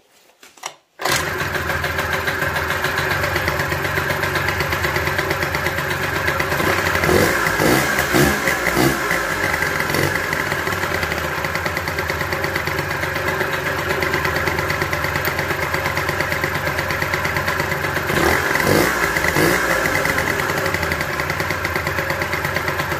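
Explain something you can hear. A small scooter engine idles with a steady, rattling putter.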